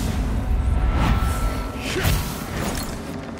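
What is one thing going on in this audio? A sword whooshes through the air in a swing.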